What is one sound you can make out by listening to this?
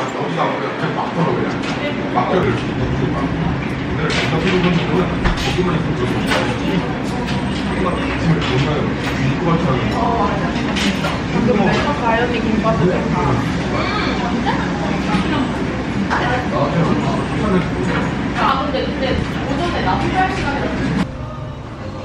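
A lively crowd chatters in a busy room.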